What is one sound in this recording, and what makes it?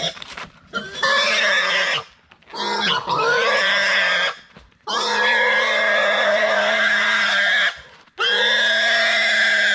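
A pig squeals loudly and shrilly.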